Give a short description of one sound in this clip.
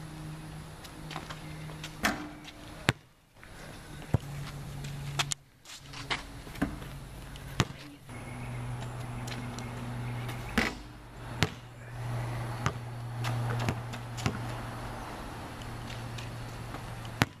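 A basketball clanks off a metal hoop.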